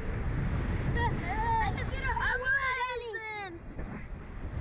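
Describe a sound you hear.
A young boy shouts and screams with excitement.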